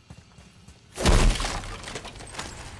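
A heavy wooden chest bursts open with a loud rush.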